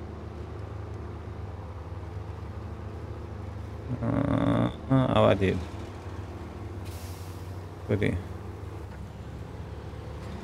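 A truck engine rumbles steadily as it drives.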